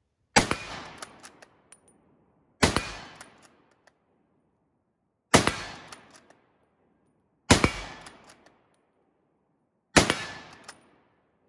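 A rifle's action clicks and clacks between shots.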